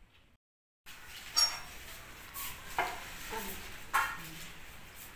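Metal plates clink and clatter.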